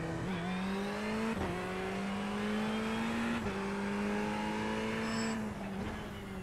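A racing car engine roars steadily, climbing in pitch between quick gear changes.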